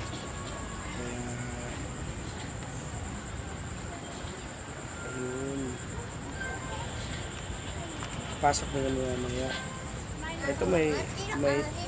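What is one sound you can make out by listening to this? A woman talks calmly nearby.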